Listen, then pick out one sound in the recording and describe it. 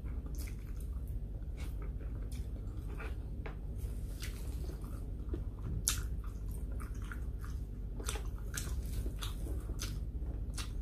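A woman chews food loudly and wetly, close to a microphone.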